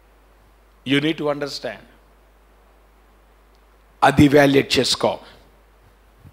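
A middle-aged man speaks with emphasis into a microphone, in short bursts with pauses.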